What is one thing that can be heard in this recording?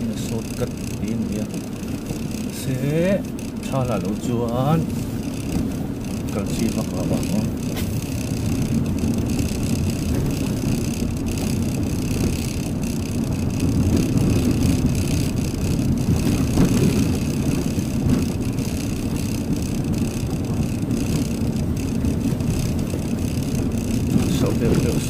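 Tyres rumble and crunch over a rough dirt track.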